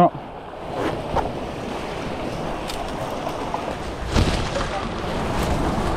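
Leaves and branches rustle as someone pushes through bushes.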